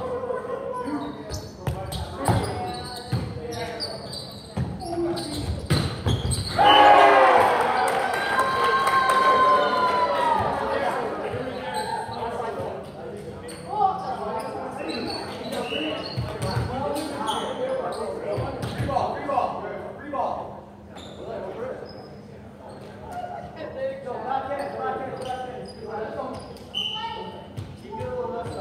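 A volleyball is struck and thumps in a large echoing hall.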